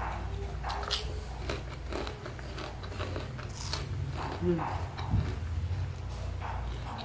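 A young man chews food noisily close to a microphone.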